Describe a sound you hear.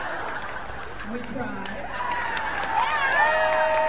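A group of people claps.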